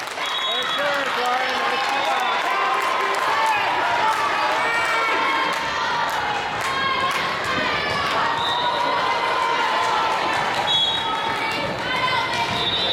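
Young women's voices call out and chatter in a large echoing gym.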